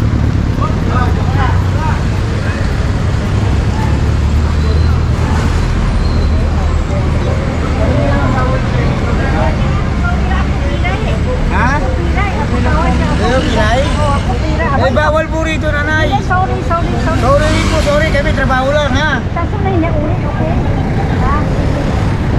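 Engines of small vehicles rumble and idle on a busy street.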